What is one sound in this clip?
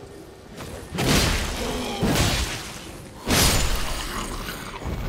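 Heavy sword blows strike with loud crashing impacts.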